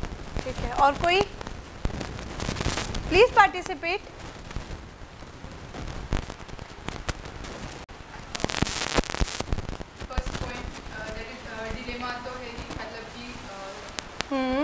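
A young woman speaks calmly into a microphone in a small echoing room.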